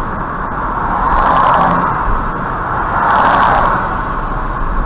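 Oncoming cars whoosh past.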